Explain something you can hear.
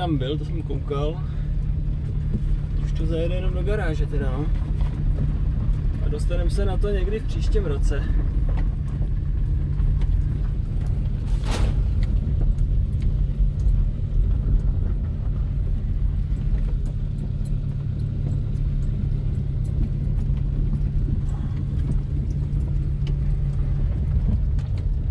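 A car engine rumbles steadily inside the cabin.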